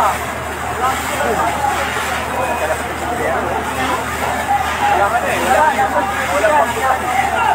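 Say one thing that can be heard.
A crowd of men shouts and calls out excitedly nearby, outdoors.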